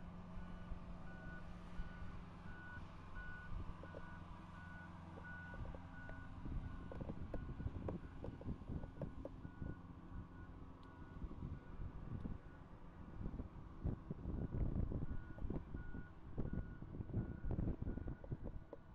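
A heavy truck engine rumbles nearby.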